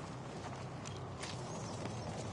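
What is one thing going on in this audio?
A rifle bolt clicks and clacks as it is worked.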